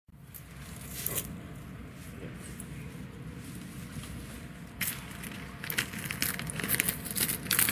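A man handles a payphone, with clicks and knocks.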